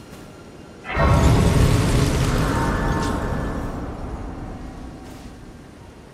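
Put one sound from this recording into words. A loud shimmering chime swells and slowly fades.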